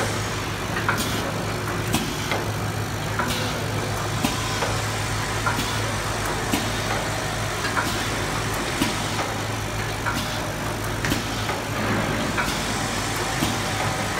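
Machine parts clack and click at a steady rhythm.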